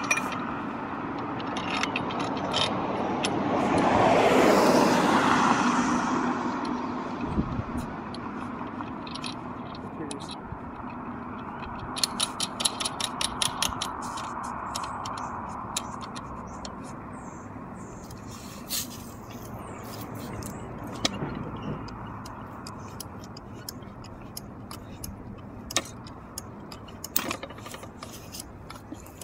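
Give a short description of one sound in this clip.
A metal hand jack ratchets with quick clicks as its lever is pumped.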